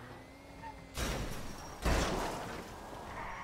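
Car tyres skid on the ground.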